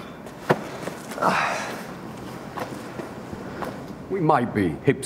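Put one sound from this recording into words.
A man answers calmly and quietly.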